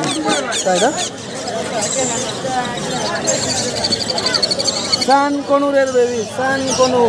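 Baby parrots chirp shrilly and rapidly.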